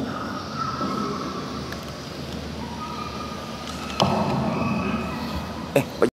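An elderly man speaks calmly into a microphone over loudspeakers in a large echoing hall.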